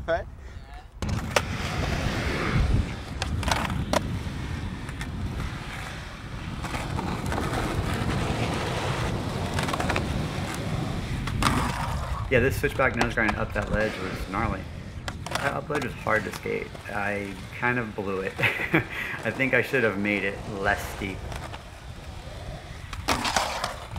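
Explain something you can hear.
Skateboard wheels roll and rumble on rough concrete.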